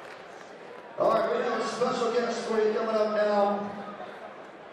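Men sing loudly in harmony through microphones.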